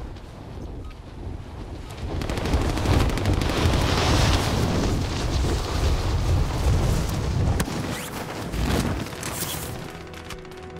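Wind rushes steadily past during a fall through the air.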